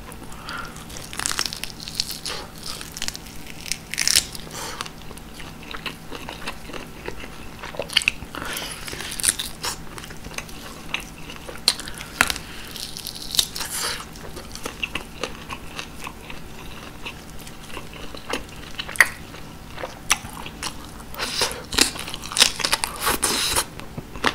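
A man bites and chews crunchy food close to a microphone.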